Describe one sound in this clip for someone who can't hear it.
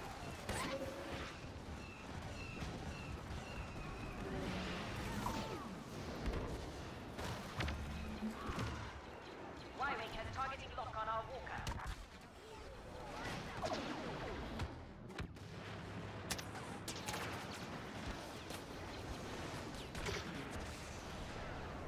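A blaster rifle fires in short bursts in a video game.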